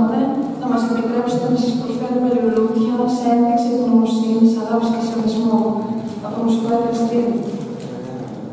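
An elderly man speaks through a microphone in a large echoing hall.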